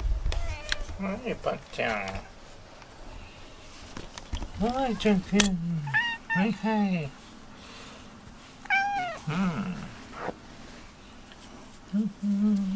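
A cat meows loudly, close by, again and again.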